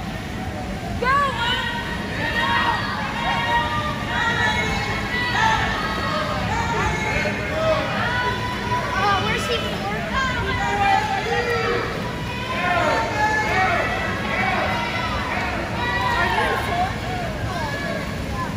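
A crowd of young people shouts and cheers loudly in an echoing hall.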